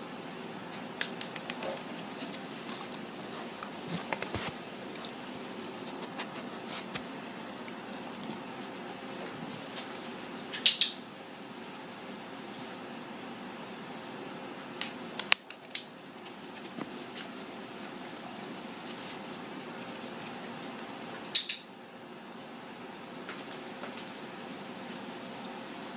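A dog's claws click and patter on a hard floor.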